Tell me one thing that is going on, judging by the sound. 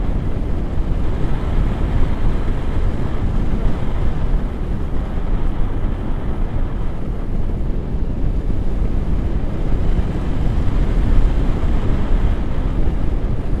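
Strong wind rushes and buffets loudly against a microphone outdoors high in the air.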